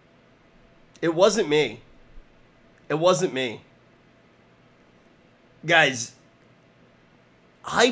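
A man talks with animation into a close microphone, in short loud bursts.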